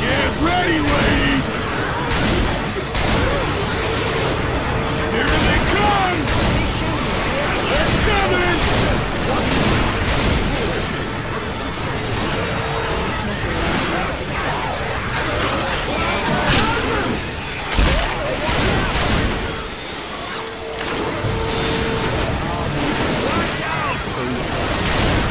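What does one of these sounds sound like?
A gun fires bursts of rapid shots.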